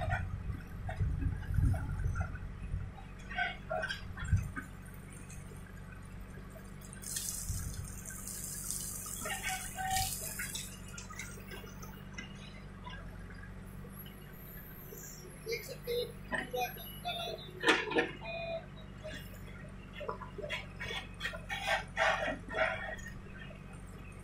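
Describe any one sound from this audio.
A backhoe bucket scrapes and digs into soil.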